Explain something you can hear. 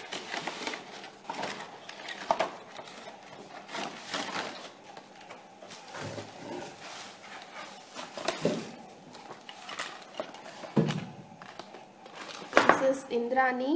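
A cardboard box and stiff plastic packaging rustle and crinkle as they are handled.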